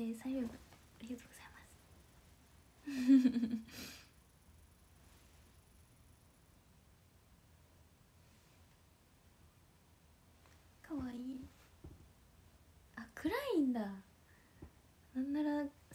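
A young woman talks casually and cheerfully close to a microphone, with pauses.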